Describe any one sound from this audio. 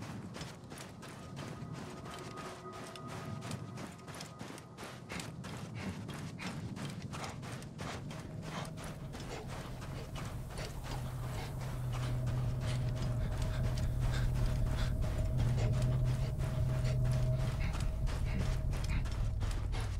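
Footsteps crunch quickly through soft sand.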